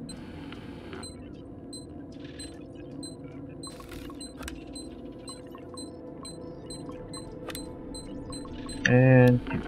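An electronic device beeps in a quick, even rhythm.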